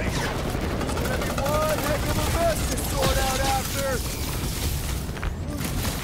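Energy blaster shots fire in bursts.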